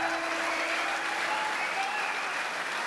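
An acoustic guitar chord rings out and fades.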